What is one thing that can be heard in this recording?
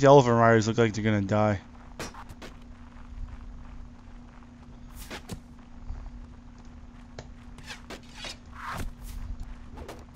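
Footsteps tramp softly through grass.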